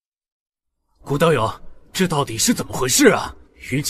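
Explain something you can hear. A young man speaks with surprise and alarm, close up.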